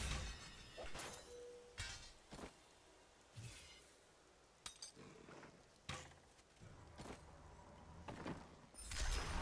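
Short game menu clicks sound as items are picked up and placed.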